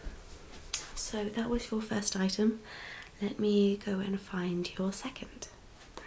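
A young woman talks close to a microphone, calmly and cheerfully.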